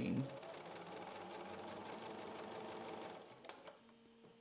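A sewing machine runs fast, stitching with a rapid whirring rattle.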